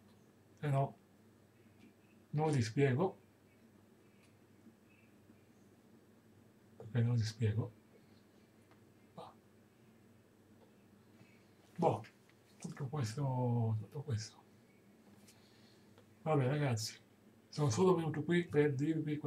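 A middle-aged man speaks close to the microphone, in short bursts with pauses.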